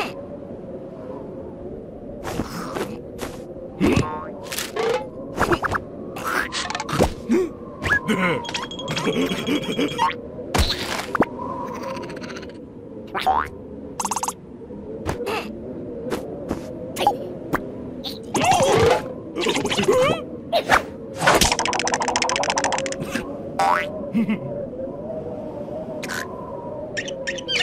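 A cartoon creature babbles and squeals in a high, silly voice.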